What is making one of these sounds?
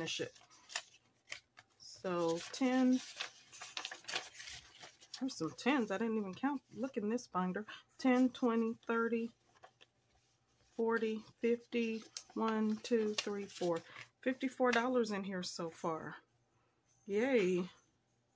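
Paper bills rustle and flick as they are counted by hand.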